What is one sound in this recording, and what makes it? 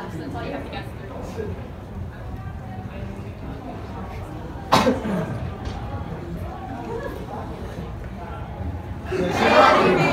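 A young woman speaks to an audience.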